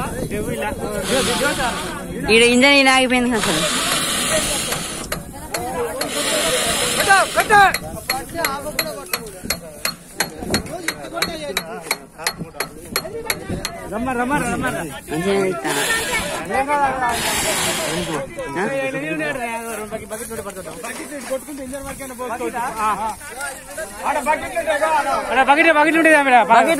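Several men shout excitedly nearby, outdoors.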